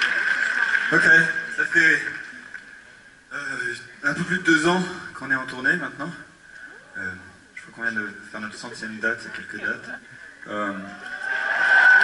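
A man speaks through loudspeakers from a stage.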